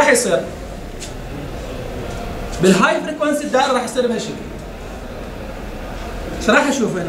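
A man speaks in a lecturing tone.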